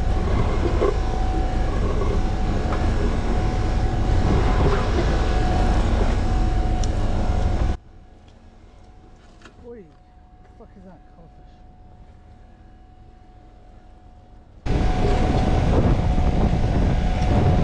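A hauler motor whirs loudly and steadily.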